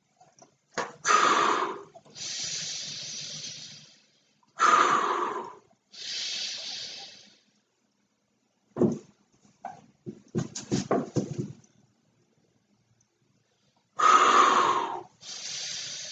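A man blows hard into a large balloon in long, strong puffs.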